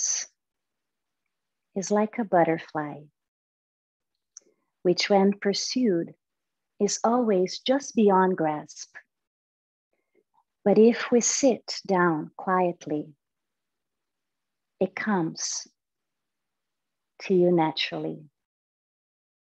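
A young woman speaks calmly and softly in short phrases, close to a microphone.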